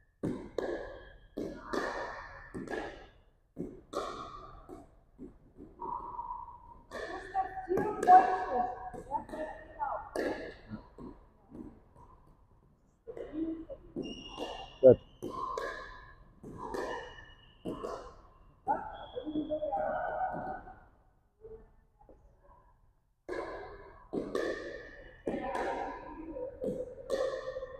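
Paddles strike a plastic ball with sharp pocks that echo around a large hall.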